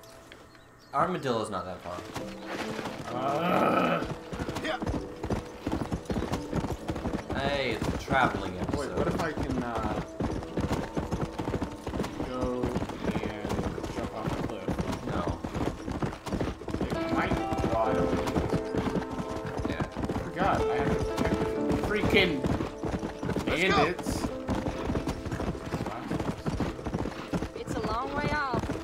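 Horse hooves pound rapidly on a dirt track at a gallop.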